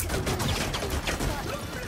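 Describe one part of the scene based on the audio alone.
A magical weapon fires with sharp zapping bursts.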